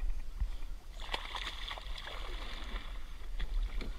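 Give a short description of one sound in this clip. Water splashes as sharks move at the sea's surface.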